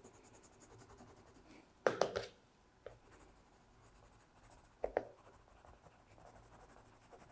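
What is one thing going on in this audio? A pencil scratches rapidly across paper in short strokes.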